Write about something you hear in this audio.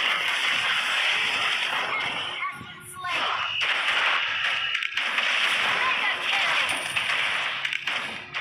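Game heroes clash with sharp hits and blasts.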